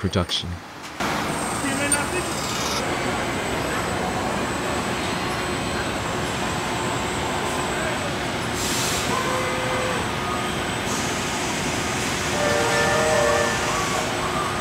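Industrial robot arms whir and hum as they move.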